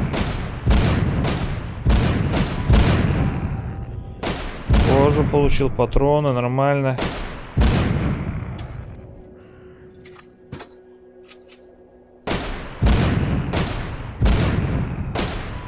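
A heavy machine gun fires loud bursts.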